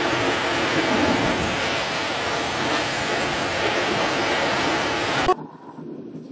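Water surges and roars loudly over the shore.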